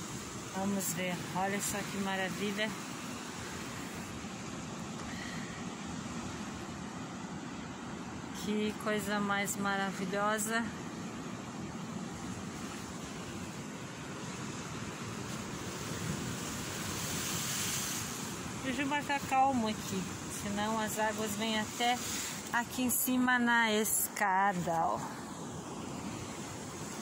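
Waves wash and break against rocks, outdoors.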